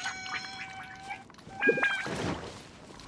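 Bright chiming tones ring out in quick succession.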